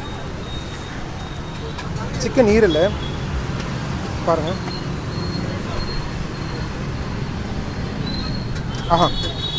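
Traffic rumbles steadily on a street nearby.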